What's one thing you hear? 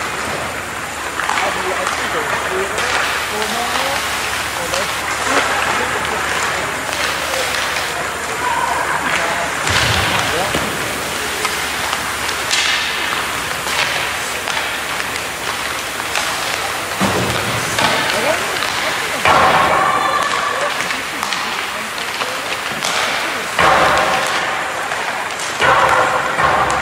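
Young players shout to each other across the ice.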